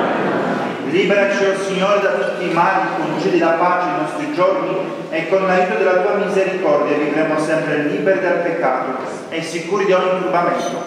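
An adult man chants in a steady singing voice through a microphone, echoing in a large hall.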